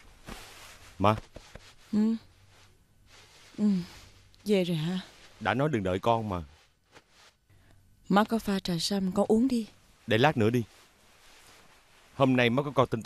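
A man speaks in a low, calm voice nearby.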